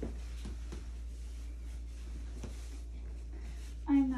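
Cloth rustles as a towel is unfolded.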